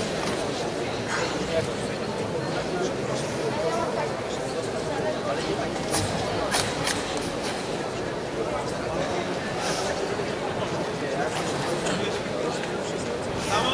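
A crowd murmurs steadily in a large echoing hall.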